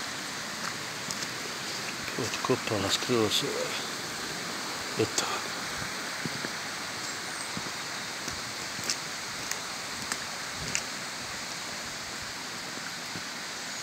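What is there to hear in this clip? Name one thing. Footsteps crunch on loose gravel.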